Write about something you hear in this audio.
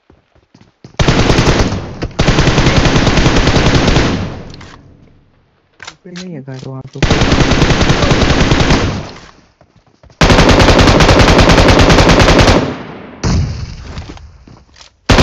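Rapid automatic gunfire fires in long, loud bursts.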